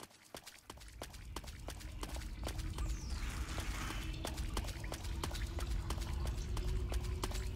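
Footsteps tread slowly over rough ground.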